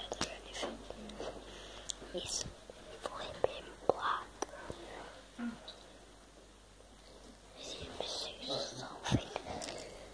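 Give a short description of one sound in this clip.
A child speaks softly, very close to the microphone.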